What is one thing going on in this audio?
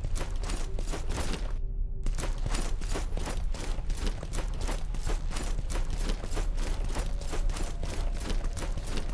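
Armoured footsteps run over stone.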